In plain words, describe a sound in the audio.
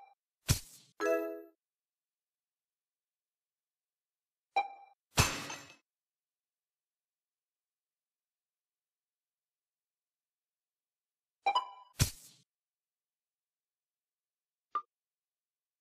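Short electronic game chimes and thuds play now and then as pieces drop into place.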